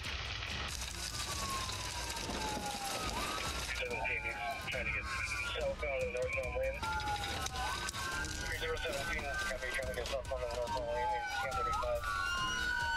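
A police siren wails close by, rising and falling.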